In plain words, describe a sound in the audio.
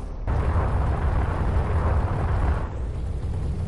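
A rushing whoosh sweeps past and fades.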